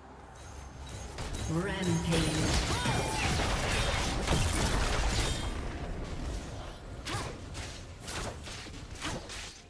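Magic blasts and sword hits clash in a busy game battle.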